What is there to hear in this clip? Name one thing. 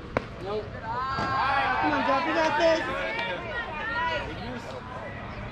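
Spectators cheer and shout from nearby.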